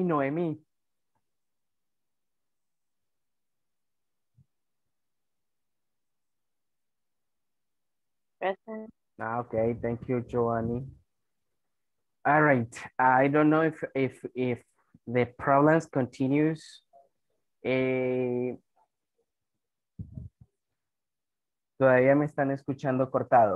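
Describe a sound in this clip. A man speaks calmly over an online call, with long pauses.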